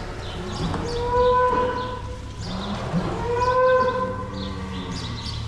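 A cow moos nearby.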